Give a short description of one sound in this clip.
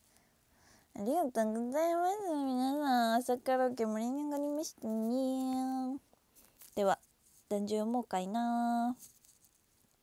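A young woman sings in short phrases close to a microphone.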